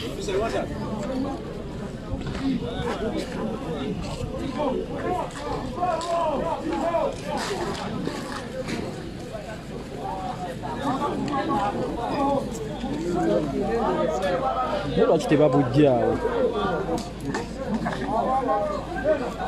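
A crowd of men and women talk and shout excitedly nearby, outdoors.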